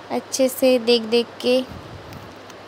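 A woman speaks briefly close by.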